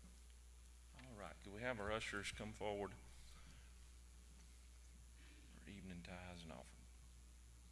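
A middle-aged man speaks over a loudspeaker in short bursts.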